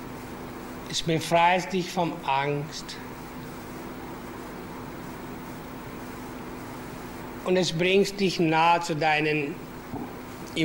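A man speaks slowly and calmly into a microphone, in short bursts with long pauses.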